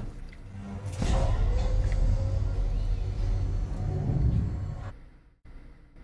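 A heavy metal door slides open with a low rumble.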